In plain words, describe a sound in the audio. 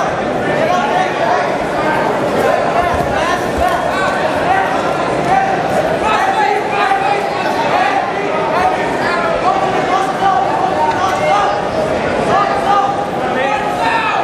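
A large crowd chatters and shouts in a big echoing hall.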